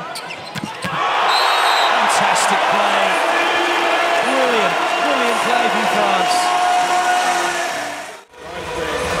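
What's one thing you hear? A crowd cheers and roars in a big echoing arena.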